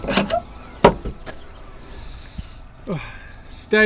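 A landing net's handle clatters and knocks as it is handled.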